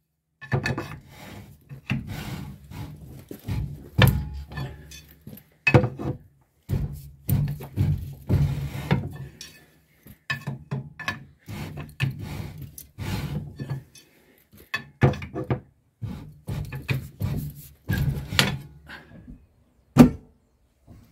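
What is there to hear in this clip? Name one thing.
A metal bar knocks and scrapes against a rusty brake drum.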